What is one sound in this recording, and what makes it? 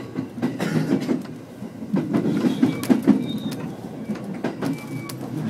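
A train rumbles along the tracks with rhythmic clacking of wheels over rail joints.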